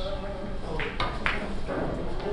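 Billiard balls knock against each other and the cushions.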